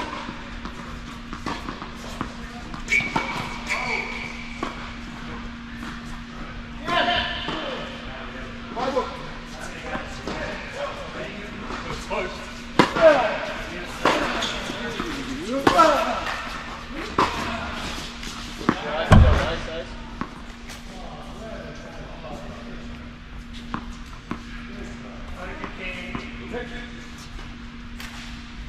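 Tennis balls are struck with rackets, with sharp pops echoing in a large indoor hall.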